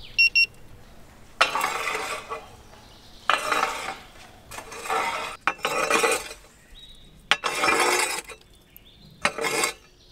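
A metal tool scrapes embers across an oven floor.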